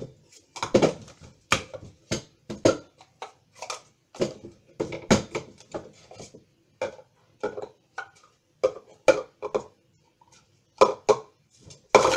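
Plastic cups clack and tap as they are stacked quickly on a table.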